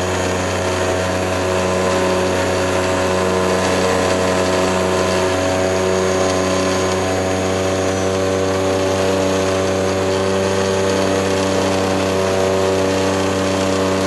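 A small aircraft engine drones loudly and steadily up close.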